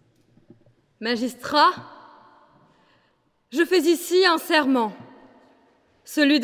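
A young woman speaks calmly into a microphone in a large echoing hall.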